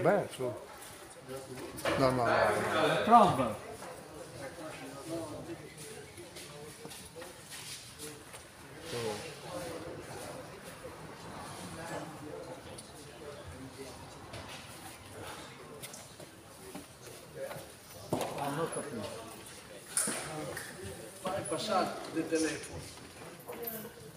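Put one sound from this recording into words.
Men and women chat and call out in a large echoing hall.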